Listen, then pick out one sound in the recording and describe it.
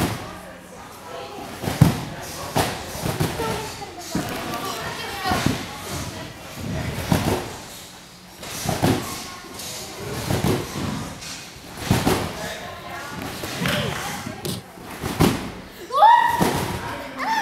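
A trampoline thumps and creaks as a gymnast bounces on it.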